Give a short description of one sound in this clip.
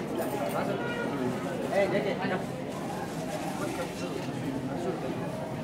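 Several men and women chatter close by.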